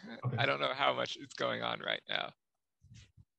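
A man speaks cheerfully over an online call.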